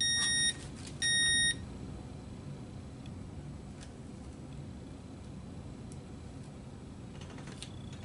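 Paper rustles and crinkles softly as hands handle it.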